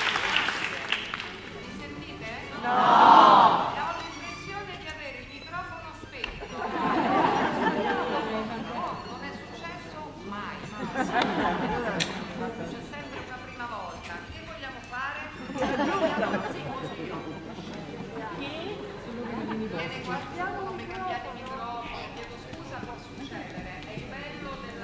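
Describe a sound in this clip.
A middle-aged woman speaks with animation through a headset microphone and loudspeakers in a large hall.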